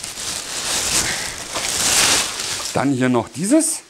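Plastic sheeting crinkles and rustles loudly.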